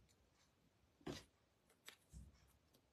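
Plastic packaging crinkles as it is handled.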